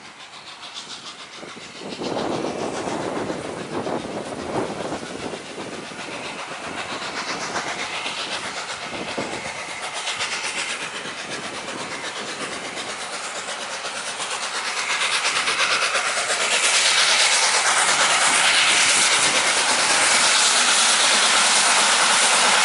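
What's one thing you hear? A steam train approaches, its engine chuffing louder and louder.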